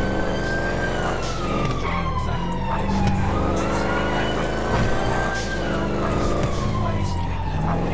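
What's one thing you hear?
Tyres screech as a car slides around corners.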